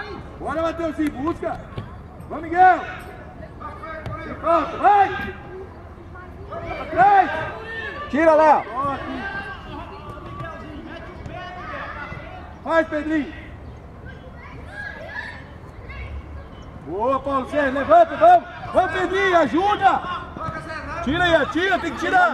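Children shout and call out to each other outdoors.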